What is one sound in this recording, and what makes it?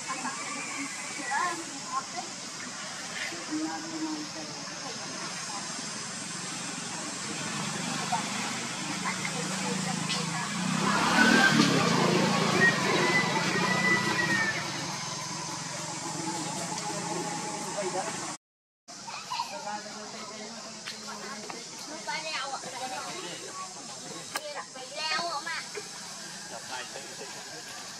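A baby monkey suckles with soft wet smacking sounds.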